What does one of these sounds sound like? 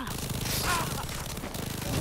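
An explosion bursts with a deep boom.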